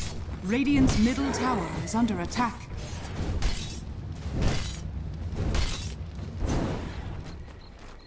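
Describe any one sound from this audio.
Sharp blows and crackling spell effects clash in a fast fight.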